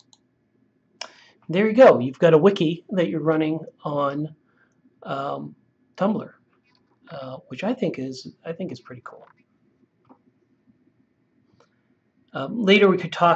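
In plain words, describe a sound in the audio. A man talks calmly and close to a microphone.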